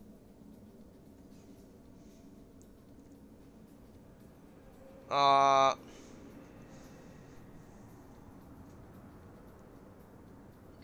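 A young man talks quietly into a close microphone.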